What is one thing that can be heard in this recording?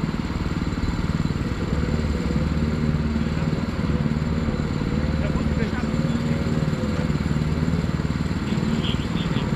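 A kart engine idles close by with a rough, steady chug.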